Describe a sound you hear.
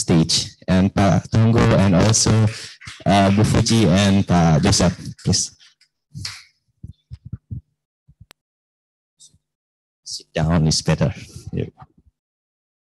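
A man speaks with animation through a microphone and loudspeaker.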